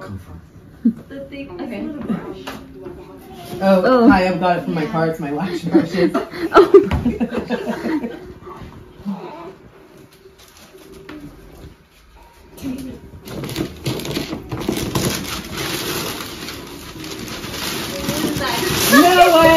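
A group of people talk and laugh nearby.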